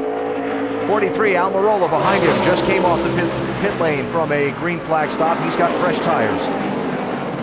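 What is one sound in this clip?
A race car roars past close by.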